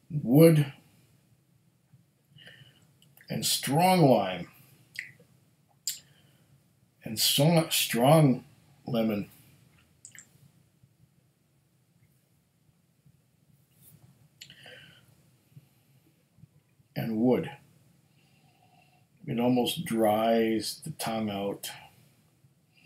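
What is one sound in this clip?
A middle-aged man speaks calmly into a nearby microphone, pausing between phrases.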